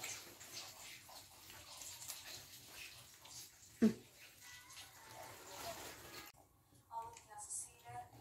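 Hands pick at and rustle food close by.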